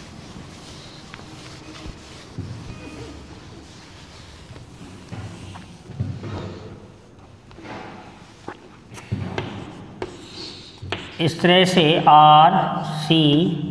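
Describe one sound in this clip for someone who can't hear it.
A man speaks steadily nearby, raising his voice toward the end.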